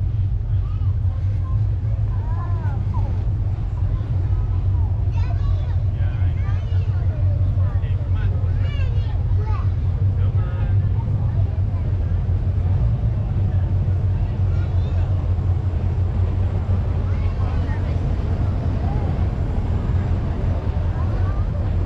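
A crowd chatters outdoors nearby.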